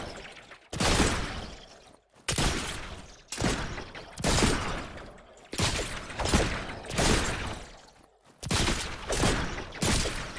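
Rushing air whooshes past in repeated sudden bursts that quickly fade.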